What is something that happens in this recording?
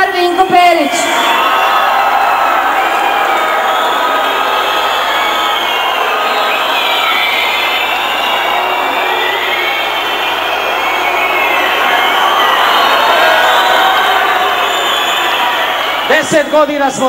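A large crowd cheers and screams.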